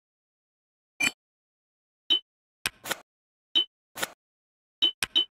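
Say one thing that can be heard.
Short menu blips sound one after another.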